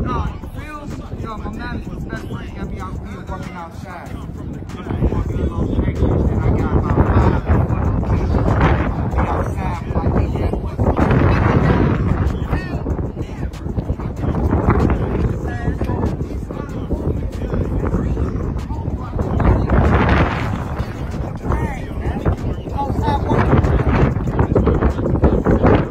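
A young man raps rhythmically and with energy.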